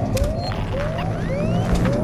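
A motion tracker beeps with quick, repeated rising chirps.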